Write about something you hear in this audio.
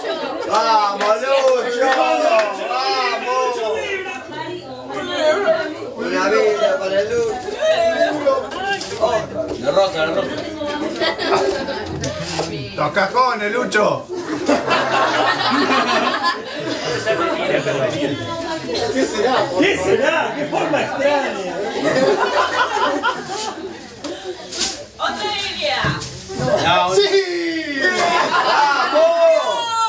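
Several people talk and laugh together in a room nearby.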